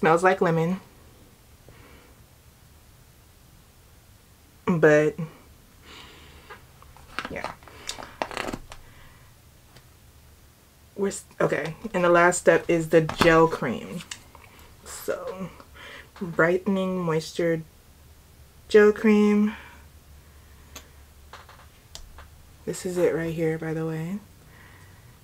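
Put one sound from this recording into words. A young woman talks calmly and close to the microphone, in short bursts with pauses.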